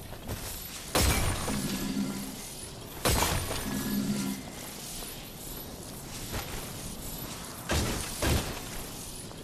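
Blades strike with sharp, heavy impacts.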